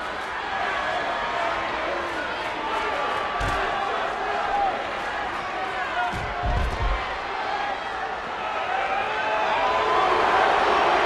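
A large crowd cheers and shouts steadily.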